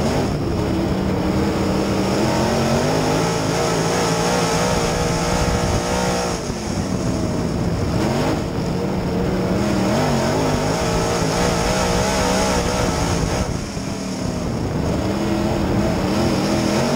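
A race car engine roars loudly close by, its pitch rising and falling as it revs.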